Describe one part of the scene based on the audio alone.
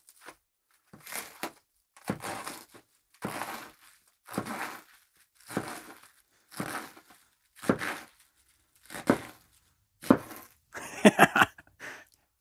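A knife chops through crisp cabbage on a wooden board, in a steady rhythm.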